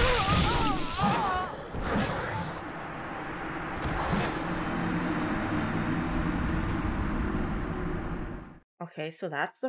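Wind howls through a snowstorm.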